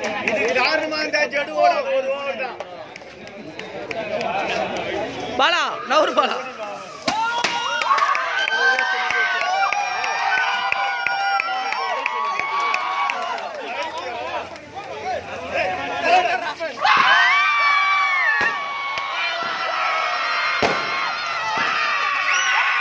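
A crowd of young men cheers and shouts excitedly close by.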